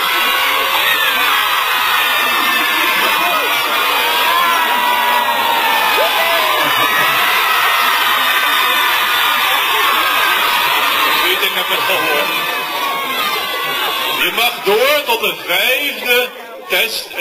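A large crowd of children sings and shouts loudly outdoors.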